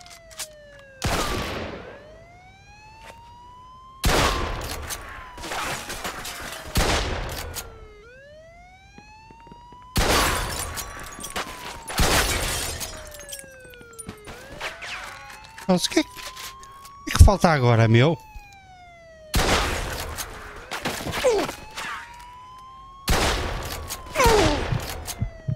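A shotgun fires loud blasts, one at a time, that echo off the walls.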